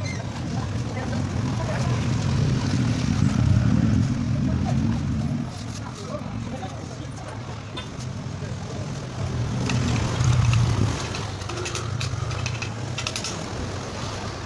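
A motor scooter drives past close by.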